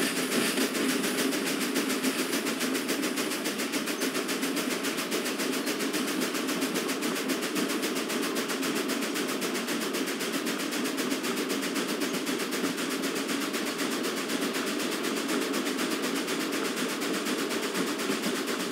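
Steel wheels rumble and clatter on the rails.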